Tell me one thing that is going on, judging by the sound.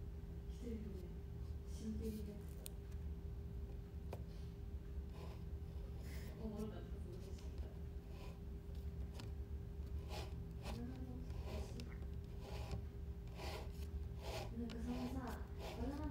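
A young woman speaks softly close by, in short phrases with pauses.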